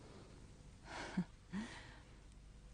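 A young woman laughs softly.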